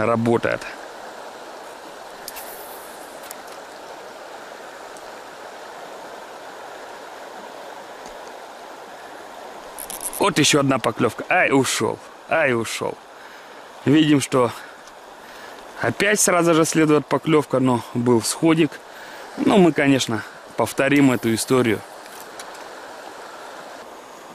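River water ripples and laps gently nearby.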